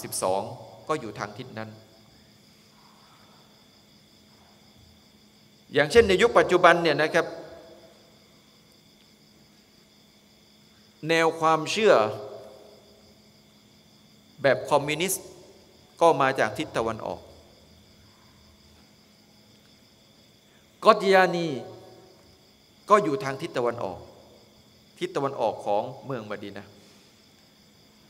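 A man speaks into a microphone in slow, measured phrases with long pauses.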